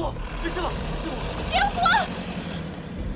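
A young man asks anxiously, close by.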